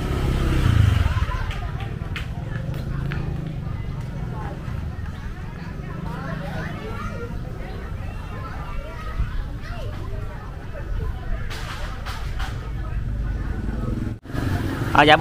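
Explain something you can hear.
Men and women murmur faintly in the distance outdoors.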